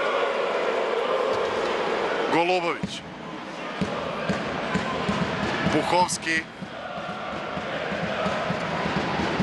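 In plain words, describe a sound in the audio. A crowd cheers and chants in a large echoing arena.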